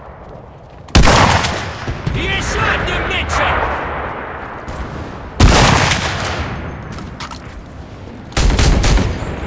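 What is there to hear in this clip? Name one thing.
A bolt-action rifle fires single loud shots.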